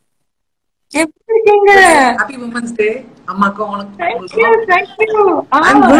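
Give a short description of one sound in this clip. A woman speaks warmly over an online call.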